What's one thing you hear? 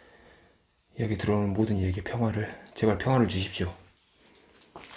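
A man speaks quietly and close by.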